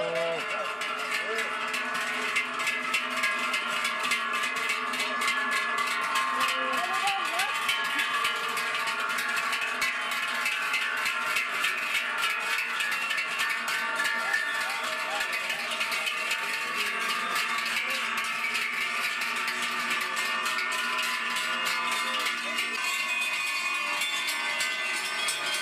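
Large cowbells clang and ring continuously as cows walk past.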